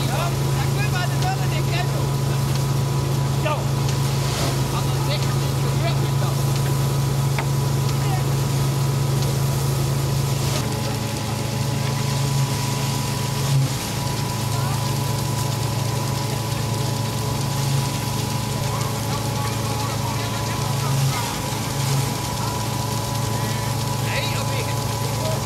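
Straw rustles as men pitch sheaves with forks.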